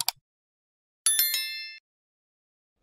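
A small bell chimes brightly and fades.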